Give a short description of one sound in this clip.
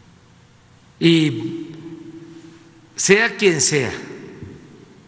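An elderly man speaks with emphasis into a microphone.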